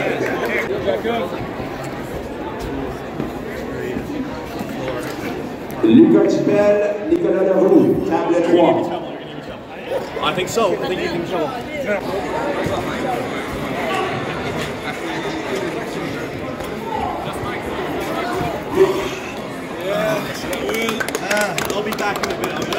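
A crowd of young men chatters.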